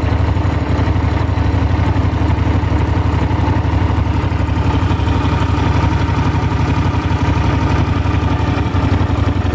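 A motorcycle engine idles close by with a steady, rapid throb.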